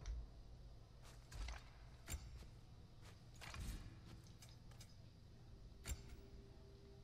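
Short menu clicks tick as options are flipped through.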